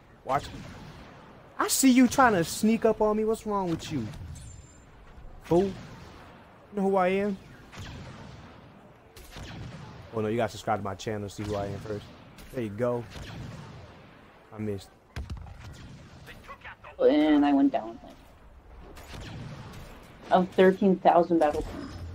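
A blaster cannon fires repeated laser shots.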